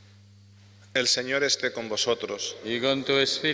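A man reads aloud clearly through a microphone in a large echoing hall.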